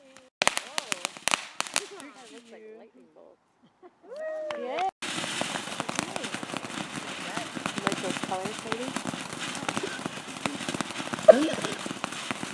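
A firework fountain crackles and pops sharply.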